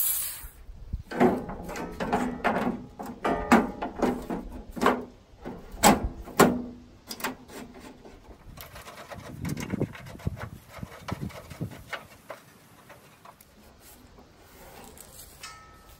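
A loose metal grille panel rattles and clanks.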